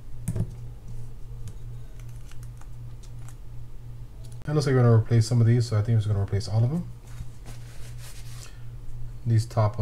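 Small metal parts click and tap against a hard surface.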